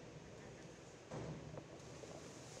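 A diver splashes into the water in a large echoing hall.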